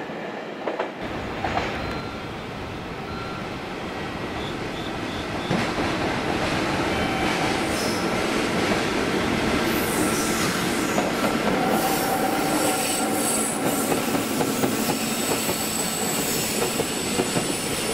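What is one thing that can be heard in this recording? A locomotive hauling a freight train passes close by with a loud rumble.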